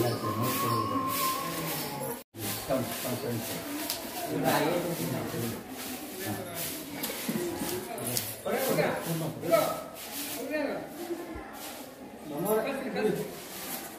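Young children chatter close by.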